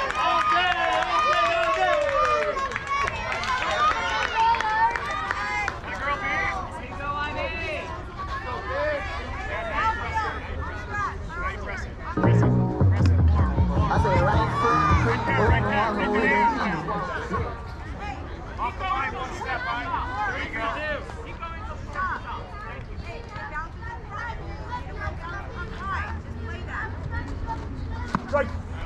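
Young girls call out and cheer across an open field.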